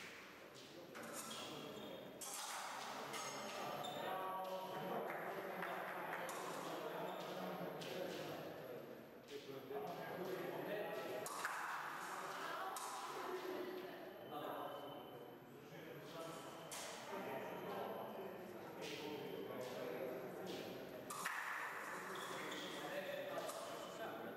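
Young men talk calmly close by, in a large echoing hall.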